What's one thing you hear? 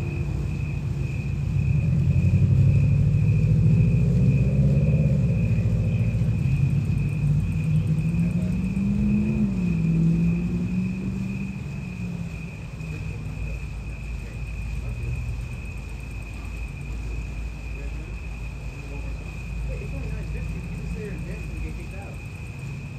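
Crickets chirp steadily outdoors at night.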